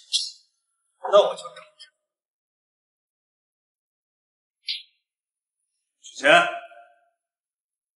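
A second young man speaks calmly.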